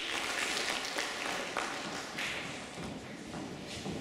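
A girl speaks into a microphone in an echoing hall.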